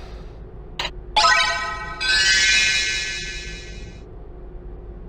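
A bright electronic jingle chimes.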